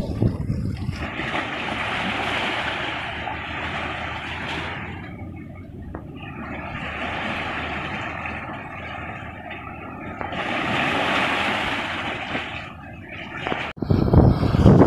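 A small stream of water rushes and gurgles over stones.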